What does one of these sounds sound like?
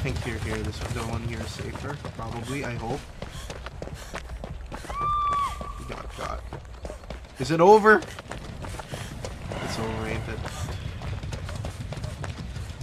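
Footsteps run quickly through grass.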